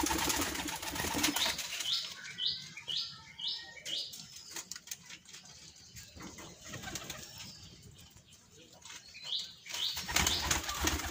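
Pigeons peck rapidly at grain on the ground with light tapping clicks.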